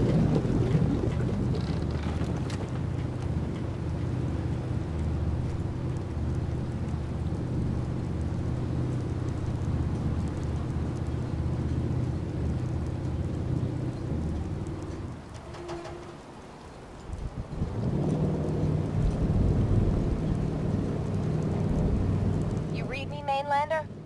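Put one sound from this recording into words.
A boat engine rumbles with a low, steady drone.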